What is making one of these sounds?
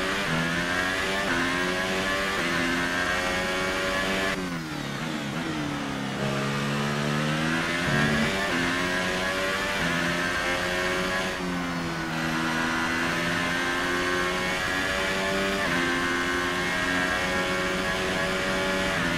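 A racing car engine screams at high revs, rising through the gears and dropping as the car slows for corners.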